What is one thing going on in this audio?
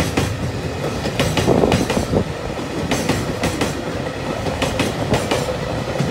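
A freight train rumbles steadily past close by.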